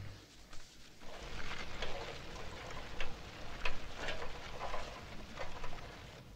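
Bicycle tyres crunch slowly over gravel.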